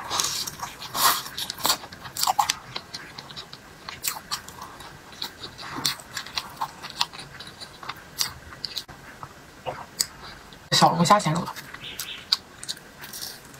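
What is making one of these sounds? A young woman chews food with wet, smacking sounds close to a microphone.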